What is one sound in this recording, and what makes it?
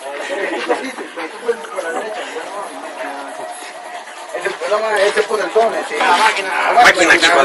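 Several men shout excitedly nearby outdoors.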